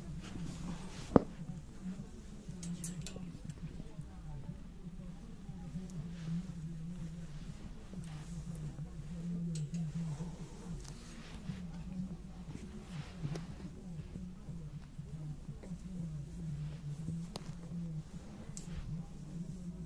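Clothes hangers click and scrape along a metal rail.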